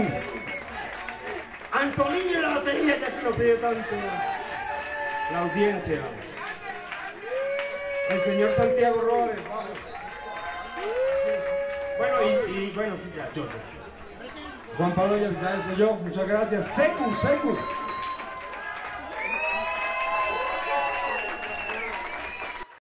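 A man sings loudly into a microphone over a loudspeaker system.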